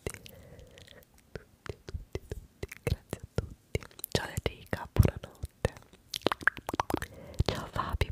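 Sharp mouth clicks and taps sound close to a microphone.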